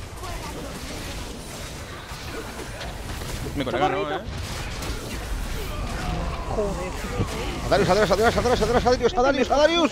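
Magic blasts and clashes of a video game fight crackle and boom.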